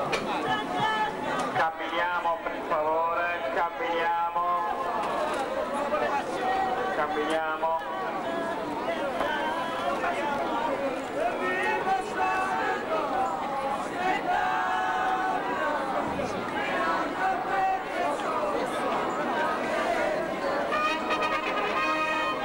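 A crowd of men and women talks all around outdoors.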